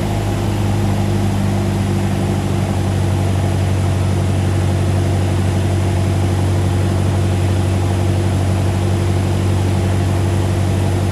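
Wind rushes past the plane's cabin.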